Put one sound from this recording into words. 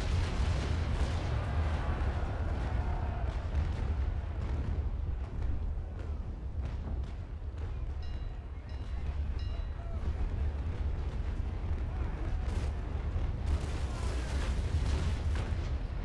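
Cannons fire in heavy booms.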